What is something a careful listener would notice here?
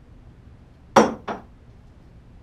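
Glasses clink sharply against a metal tray.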